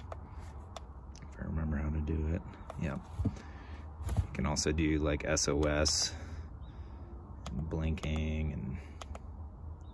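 A small button clicks several times.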